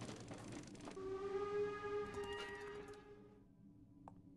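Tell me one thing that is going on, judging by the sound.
A cartoon cat lets out a long, drawn-out yowl.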